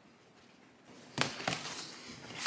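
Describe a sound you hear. A plastic sheet crinkles and rustles.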